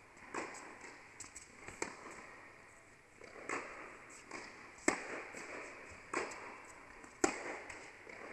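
A tennis ball is struck with a racket in a large echoing hall.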